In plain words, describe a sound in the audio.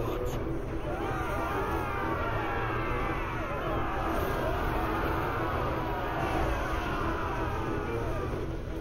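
Flames roar and crackle as fire bursts up.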